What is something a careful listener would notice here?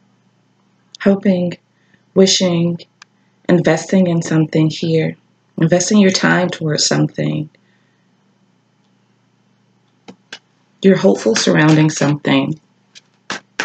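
A woman speaks calmly and close by, heard through a computer microphone.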